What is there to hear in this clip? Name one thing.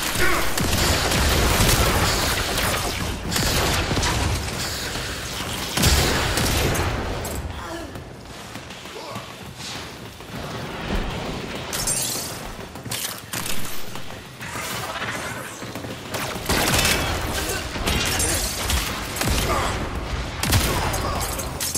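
Guns fire in rapid bursts, with loud blasts and explosions.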